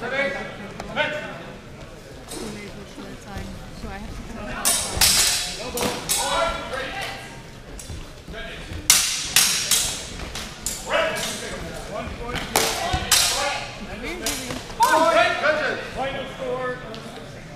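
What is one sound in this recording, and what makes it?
A crowd of onlookers calls out and cheers nearby.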